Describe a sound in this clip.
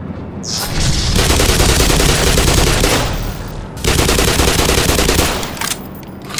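An automatic rifle fires loud rapid bursts that echo in a tunnel.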